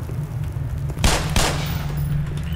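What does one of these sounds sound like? A pistol fires two sharp shots that echo briefly.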